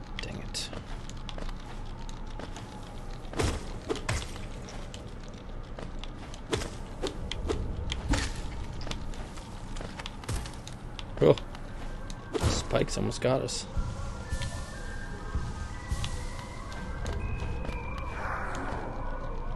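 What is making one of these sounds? A small figure's footsteps and landings thud and click.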